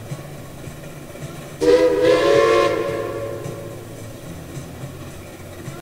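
A steam locomotive chugs steadily along the track.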